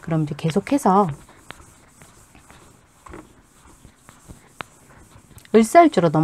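A felt eraser rubs across a chalkboard.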